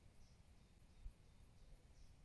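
A putter taps a golf ball softly.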